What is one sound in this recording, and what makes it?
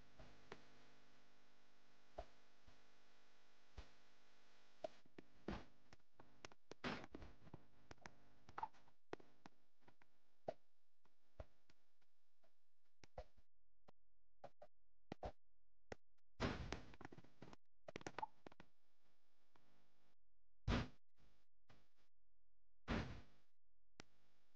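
A game character's footsteps thud on wooden planks.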